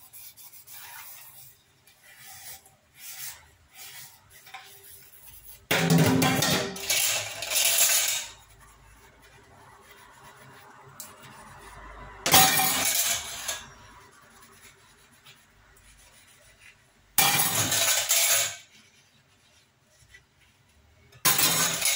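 A sponge scrubs a steel pot with a soft rasping sound.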